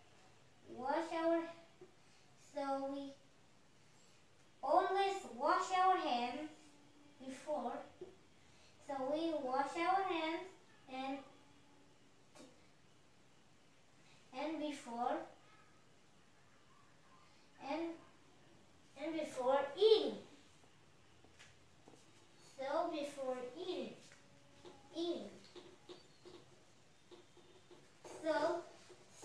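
A young boy speaks in short phrases, explaining slowly.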